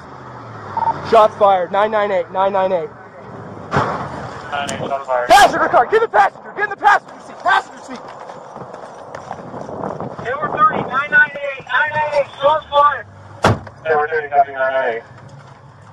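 A man shouts urgently close by.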